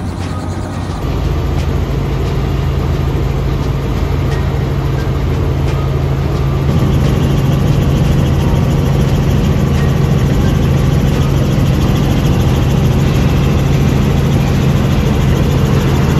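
A helicopter engine and rotor drone steadily from inside the cabin.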